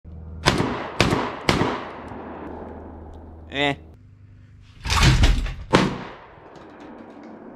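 Rifle shots ring out loudly outdoors, echoing off the hills.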